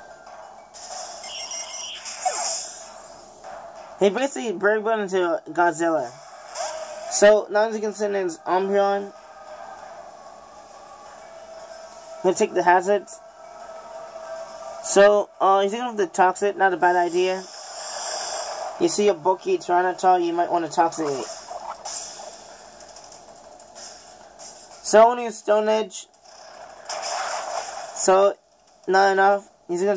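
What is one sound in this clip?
Game battle music plays from a small speaker.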